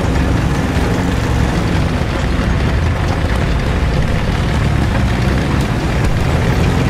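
Tank tracks clank and rattle over rubble.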